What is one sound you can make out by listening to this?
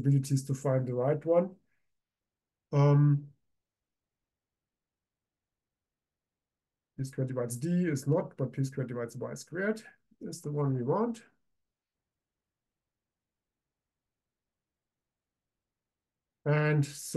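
A man speaks calmly into a microphone, explaining in short bursts with pauses.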